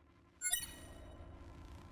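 A bright electronic chime rings.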